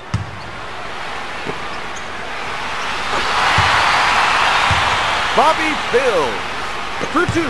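An arena crowd cheers and swells.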